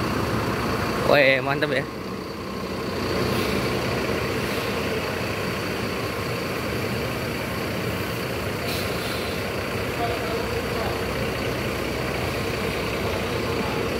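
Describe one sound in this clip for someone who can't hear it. A large bus engine rumbles steadily as the bus rolls slowly past close by.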